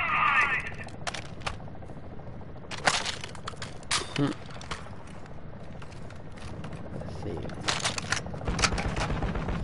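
Gunshots crack in short, quick bursts.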